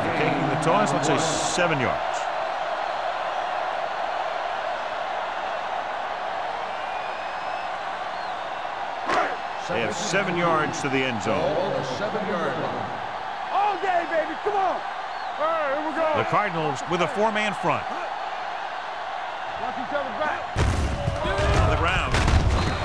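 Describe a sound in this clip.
A large stadium crowd cheers and murmurs steadily.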